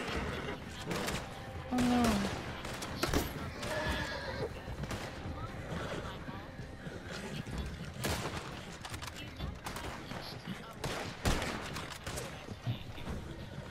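Gunshots crack repeatedly nearby.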